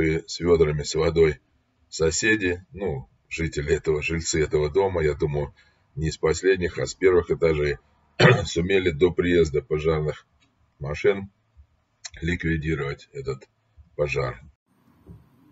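An elderly man talks with animation close to a microphone.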